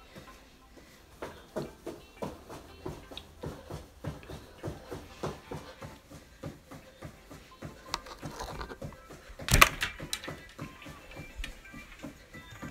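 Feet thump rhythmically on a mat as a woman jogs in place.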